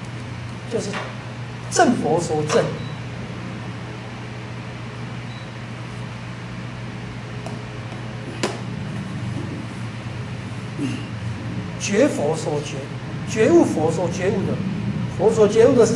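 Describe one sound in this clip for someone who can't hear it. A man speaks calmly nearby, in short phrases.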